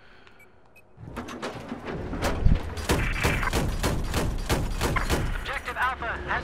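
Heavy guns fire in rapid, repeated bursts.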